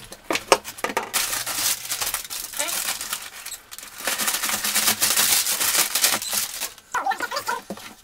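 Paper packing crinkles and rustles loudly.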